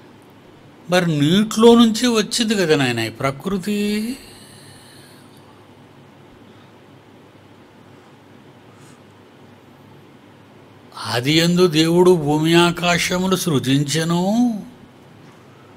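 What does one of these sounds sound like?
An elderly man speaks calmly and earnestly into a close microphone.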